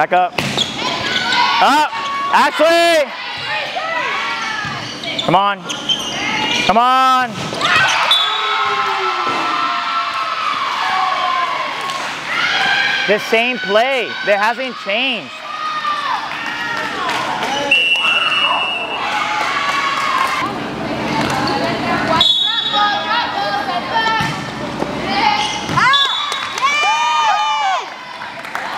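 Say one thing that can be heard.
Young women call out and shout to each other in a large echoing hall.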